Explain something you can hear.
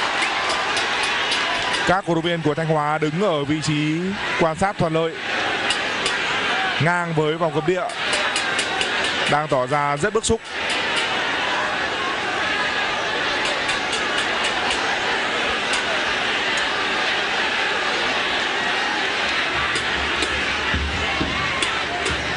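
A large crowd roars and chants steadily outdoors.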